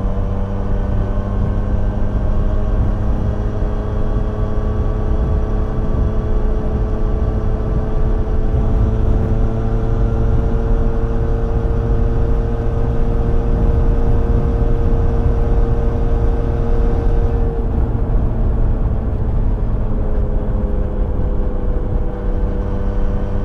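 Wind roars loudly past the rider.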